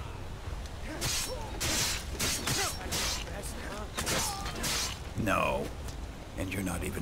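Steel blades clash and slash in a fight.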